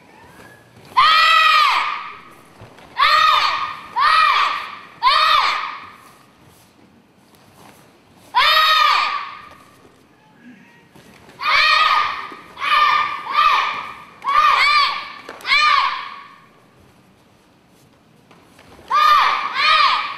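A group of children shouts together in short, loud bursts in an echoing hall.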